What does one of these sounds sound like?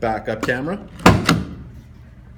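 A tailgate latch clicks open with a sharp knock.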